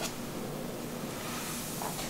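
A towel rubs against wet hair.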